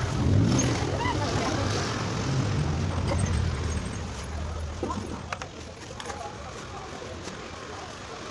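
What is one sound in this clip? A trowel scrapes wet cement.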